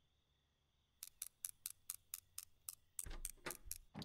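A lock pick clicks rapidly inside a door lock.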